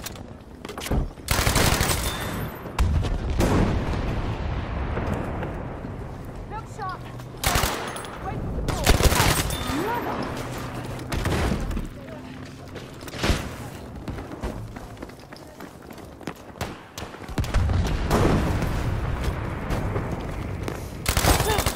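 Gunshots fire in loud, echoing bursts.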